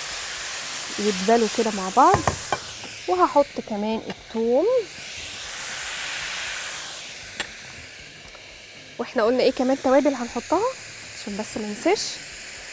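A woman talks calmly and clearly.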